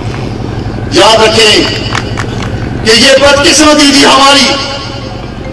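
A man speaks loudly and passionately through a microphone and loudspeakers, in bursts.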